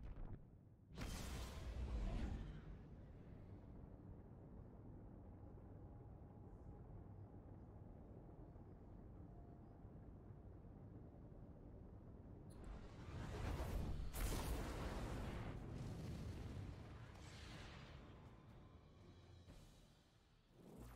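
A spaceship's engines rumble and roar in swelling waves.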